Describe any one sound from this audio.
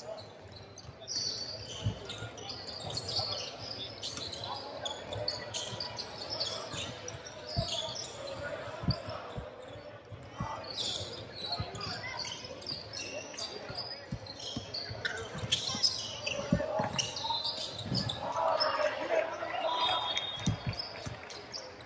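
Basketball shoes squeak sharply on a hardwood floor in a large echoing gym.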